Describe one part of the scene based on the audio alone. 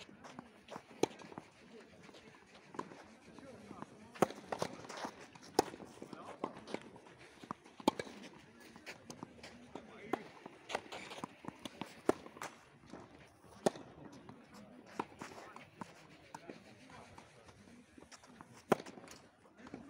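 Tennis balls pop sharply off rackets in a rally outdoors.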